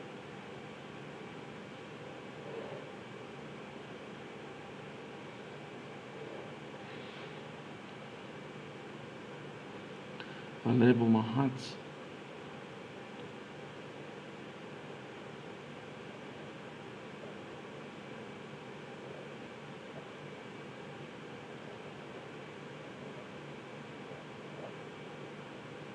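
A pen scratches lightly across paper.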